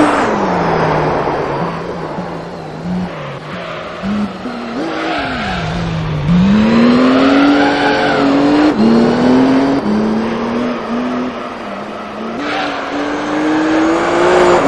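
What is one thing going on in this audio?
A race car engine roars and revs up and down as it shifts gears.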